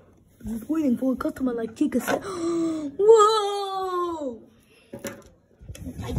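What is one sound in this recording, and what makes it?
A hand handles plastic toys with light clicks.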